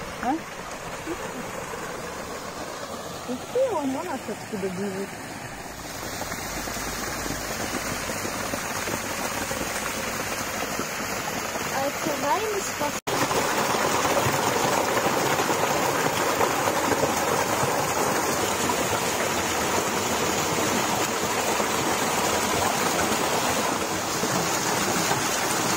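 Water splashes and rushes steadily down rocks nearby.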